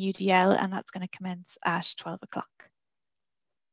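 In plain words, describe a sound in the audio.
A woman speaks calmly and warmly into a headset microphone, heard as if over an online call.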